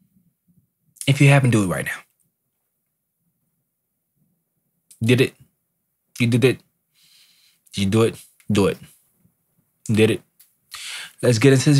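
A young man talks close to a microphone in short bursts with pauses.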